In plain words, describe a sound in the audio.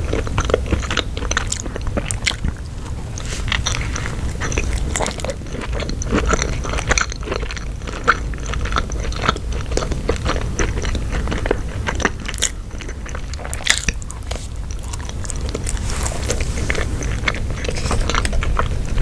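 A young woman chews food wetly and close to a microphone.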